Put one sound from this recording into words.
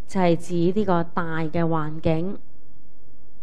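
A woman speaks calmly into a microphone, close by.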